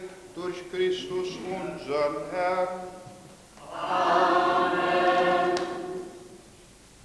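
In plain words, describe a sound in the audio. A group of people sings together in an echoing hall.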